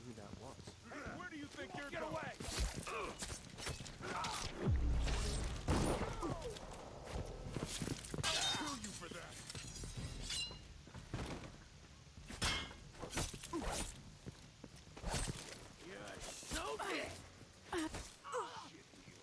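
A man shouts and grunts angrily close by.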